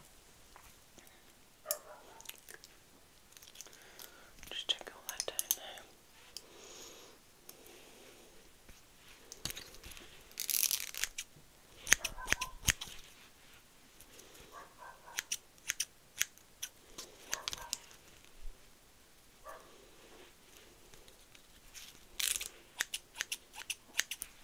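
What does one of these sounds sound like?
A woman whispers softly close to a microphone.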